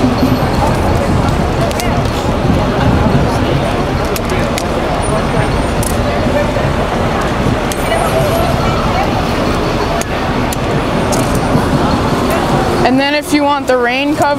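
A busy city crowd murmurs outdoors.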